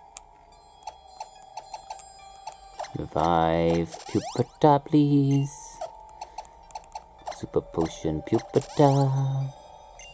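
Short electronic blips sound as a game menu cursor moves.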